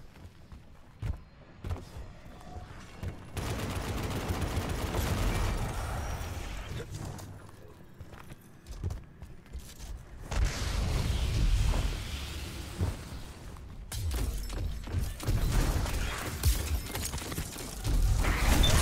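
A rifle fires in short bursts of loud shots.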